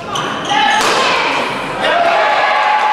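A shuttlecock is struck sharply with a racket.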